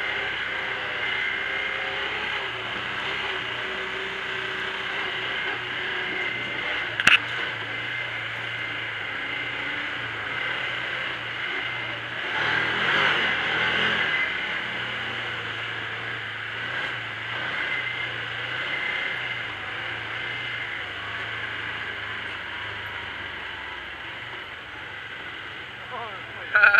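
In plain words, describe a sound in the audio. A small off-road vehicle's engine hums steadily up close.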